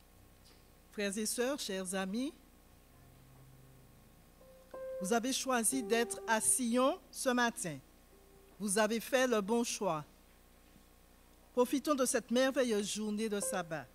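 A middle-aged woman speaks calmly into a microphone in a large echoing room.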